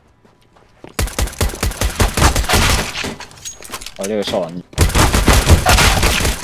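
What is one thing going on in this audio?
Rapid gunshots fire in loud bursts.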